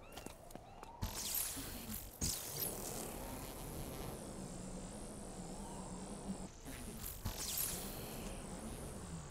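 A crackling energy blast whooshes and roars.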